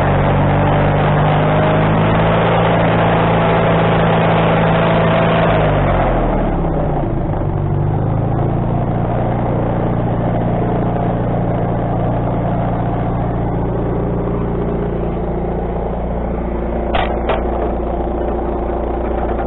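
A sawmill engine runs with a steady drone.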